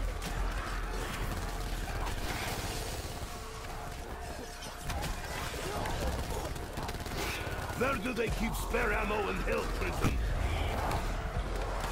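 An electric weapon crackles and zaps in rapid bursts.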